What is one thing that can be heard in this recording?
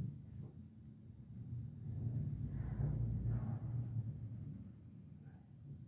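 An elevator hums low as it travels between floors.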